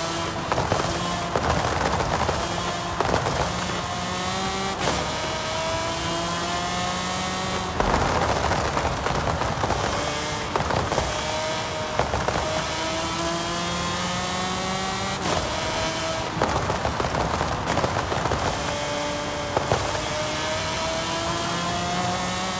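A racing car engine roars and revs up through the gears at high speed.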